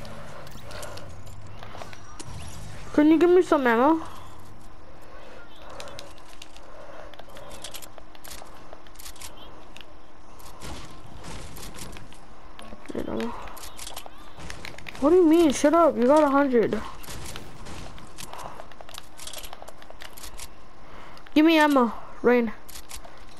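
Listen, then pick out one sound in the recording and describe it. Footsteps patter quickly on grass and wood.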